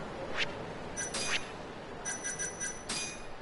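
Menu beeps chime in quick succession.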